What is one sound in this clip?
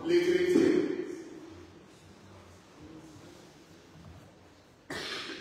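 An elderly man speaks slowly and calmly in a large echoing hall.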